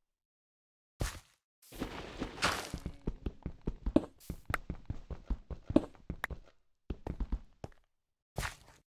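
Gritty crunching thumps come in quick bursts as blocks are dug out.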